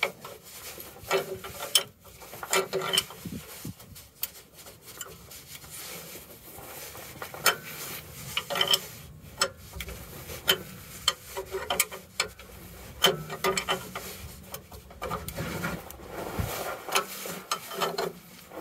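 A ratchet wrench clicks rapidly as a bolt is turned.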